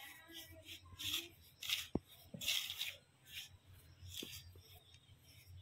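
Hands rustle and squish through soft flour.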